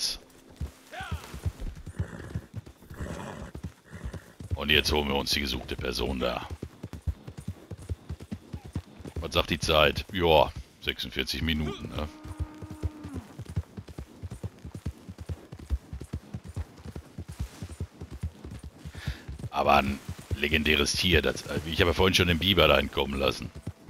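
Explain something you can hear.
Horse hooves thud rapidly on soft ground as a horse gallops.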